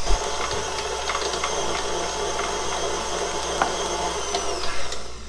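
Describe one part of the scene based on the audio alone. An electric stand mixer whirs steadily.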